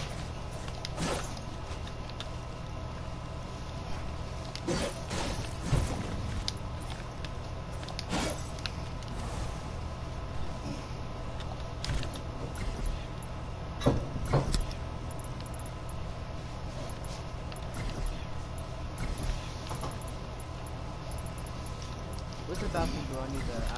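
Building pieces snap into place with short clicks and thuds.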